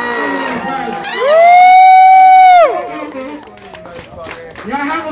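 A brass band plays loudly.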